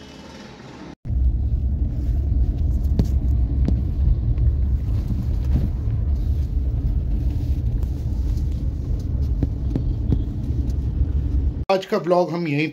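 A car engine rumbles steadily while driving on a road.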